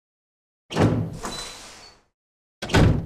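A heavy door creaks slowly open.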